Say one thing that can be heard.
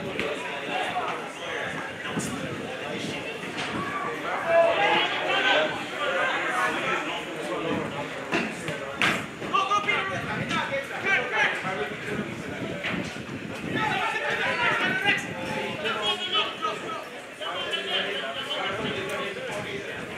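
Spectators chatter and call out nearby, outdoors.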